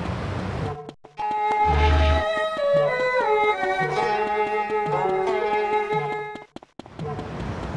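A short cheerful tune plays.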